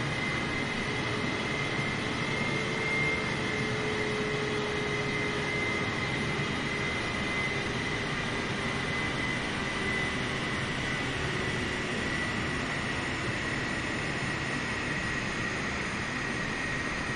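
A jet engine whines and roars steadily as an airliner taxis.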